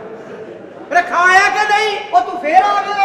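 A man shouts loudly on a stage.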